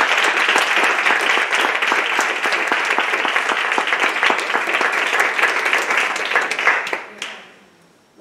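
An audience applauds loudly in a room.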